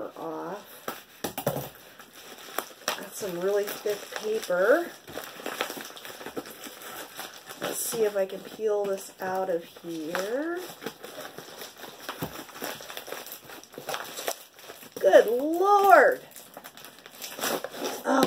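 Plastic wrapping crinkles and rustles as hands unwrap a parcel.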